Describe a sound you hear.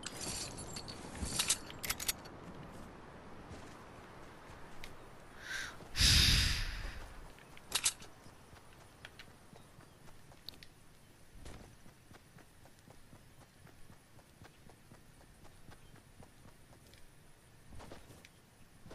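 Quick footsteps patter on the ground.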